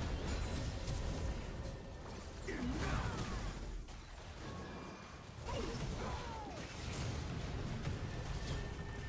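Video game spell effects crackle and burst in a fast fight.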